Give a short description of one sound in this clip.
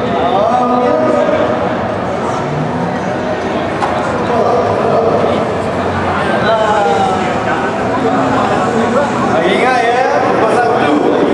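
A crowd murmurs in a busy, echoing hall.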